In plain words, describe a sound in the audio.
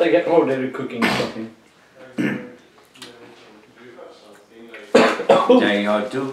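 A man bites and crunches on crisp bread.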